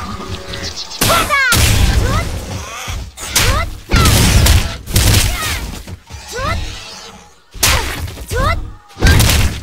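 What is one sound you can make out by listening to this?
A game creature screeches and roars.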